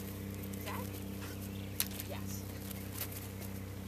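A dog's paws patter across grass.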